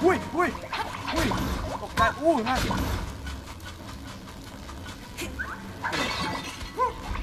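Playful bouncing video game sound effects boing repeatedly.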